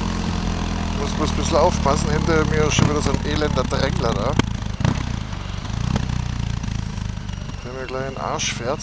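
A man speaks close by over the engine noise.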